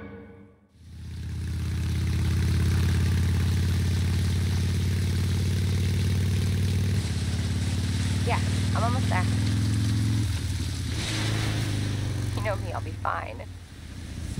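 A motorcycle engine idles and rumbles steadily.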